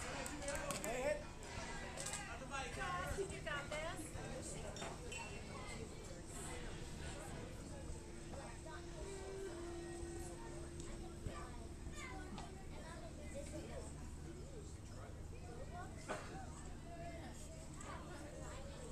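Boys shout and chatter across an open field.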